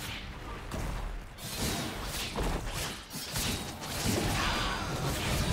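Magic spells and weapon hits clash in a fast-paced fantasy battle game.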